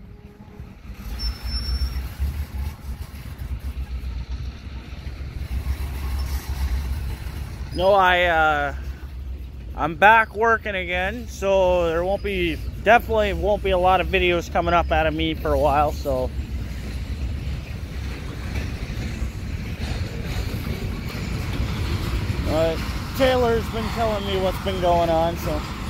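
Freight cars rumble steadily past on the rails.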